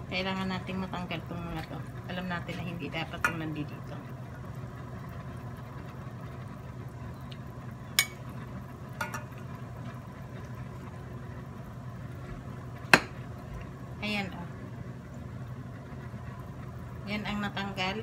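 Broth simmers and bubbles steadily in a pot.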